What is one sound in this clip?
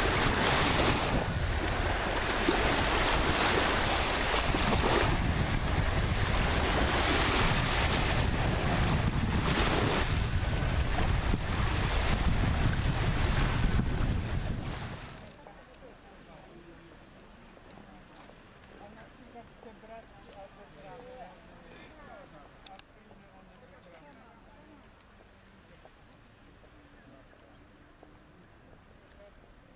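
Gentle waves wash on the sea.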